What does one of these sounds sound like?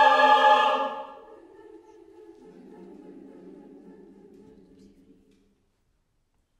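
A large choir sings together in a reverberant hall, the final chord fading away.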